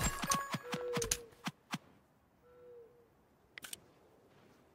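Sword blows land with sharp hits.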